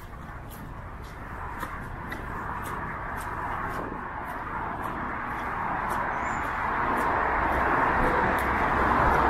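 A car approaches on a wet road, its tyres hissing louder and louder.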